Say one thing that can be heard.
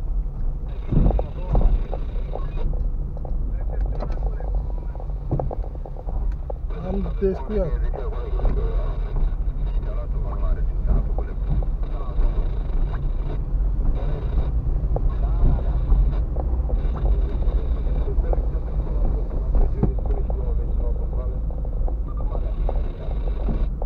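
Tyres rumble and bump over a rough, cracked road.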